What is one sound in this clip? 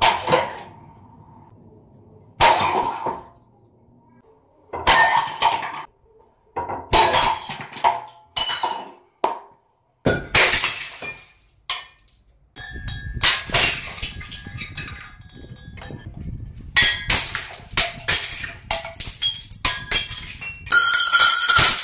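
A swinging hammer smashes glass bottles.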